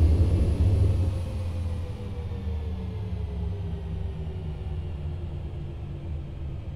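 Jet engines on an airliner wind down with a falling whine.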